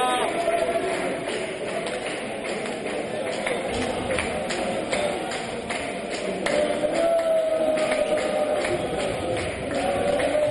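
A crowd cheers and chants throughout a large echoing hall.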